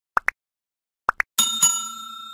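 A mouse button clicks in quick pairs.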